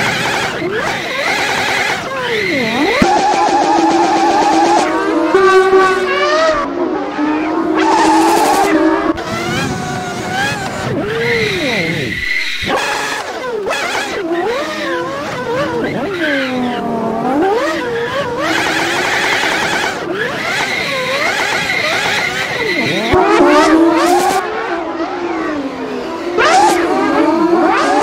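A car engine revs high and roars, rising and falling in pitch as gears change.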